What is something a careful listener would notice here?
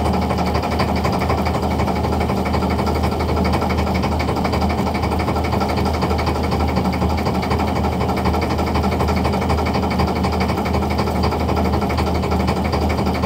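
A boat engine hums steadily close by.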